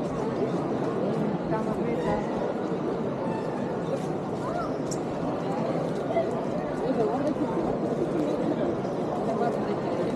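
A crowd of people chatter in a busy open street.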